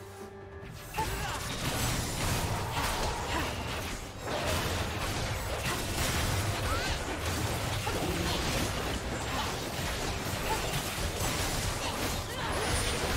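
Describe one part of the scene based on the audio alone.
Game spell effects crackle and boom in a fight against a monster.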